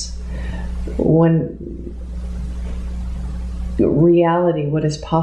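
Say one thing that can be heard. A middle-aged woman speaks calmly and haltingly, close by.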